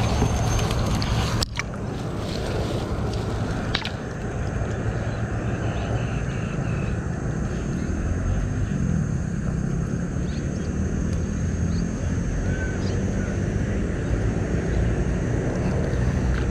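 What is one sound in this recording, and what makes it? Wet grass rustles as hands pull at it.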